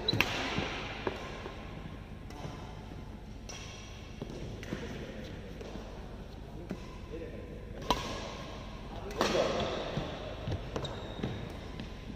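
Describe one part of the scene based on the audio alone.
Sneakers squeak and patter on a hard court floor.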